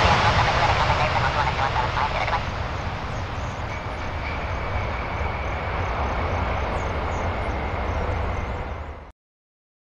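Jet engines rumble at a distance as an airliner rolls along a runway.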